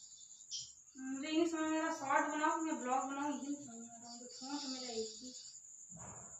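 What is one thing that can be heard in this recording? A woman speaks gently to small children close by.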